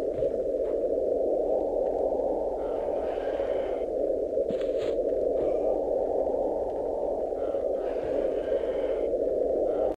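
Water rushes with a steady low roar.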